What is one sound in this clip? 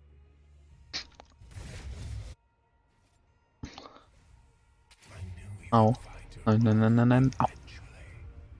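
Magical spell effects whoosh and chime in bursts.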